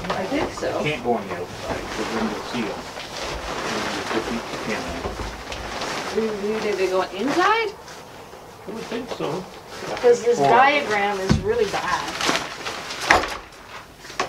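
A woven panel scrapes and thumps against wood.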